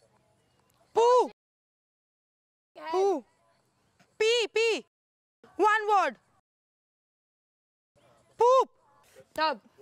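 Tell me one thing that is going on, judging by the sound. A young woman shouts instructions with urgency.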